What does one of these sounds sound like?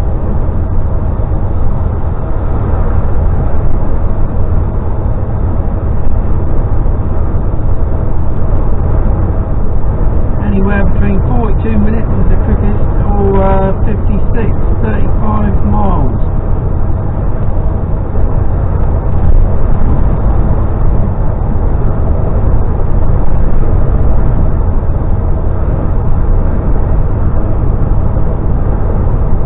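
A vehicle's engine and tyres rumble steadily on a road.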